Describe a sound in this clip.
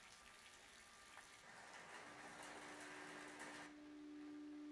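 Rain falls steadily and patters on a window ledge.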